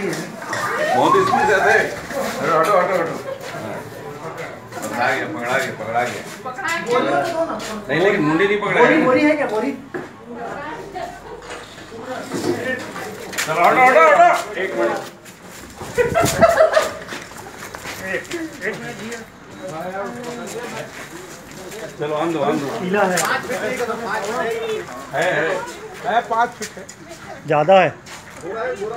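A man talks excitedly close by.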